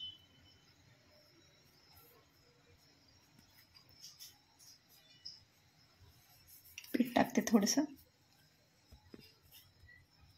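Hands pat and press soft dough.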